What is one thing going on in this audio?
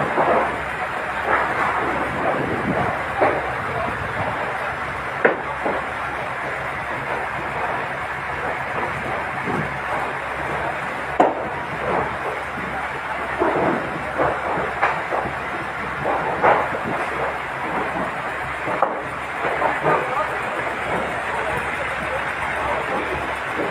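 A fire truck engine rumbles steadily nearby.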